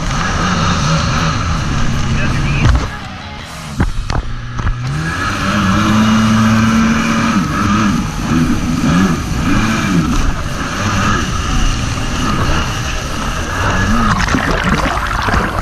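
A jet ski engine roars and revs up and down.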